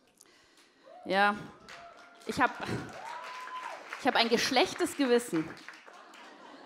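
A young woman speaks expressively into a microphone in a large hall.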